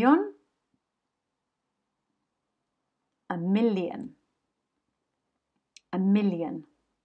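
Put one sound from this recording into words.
A woman speaks in short, expressive phrases close to a microphone, with long pauses between them.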